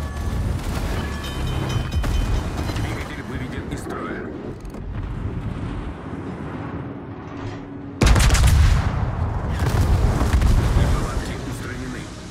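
Shells explode with deep rumbling blasts.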